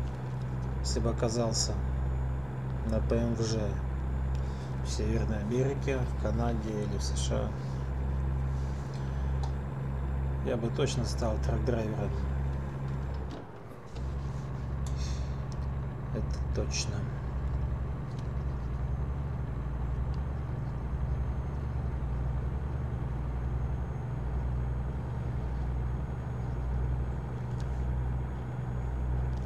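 A truck engine rumbles steadily as it drives along.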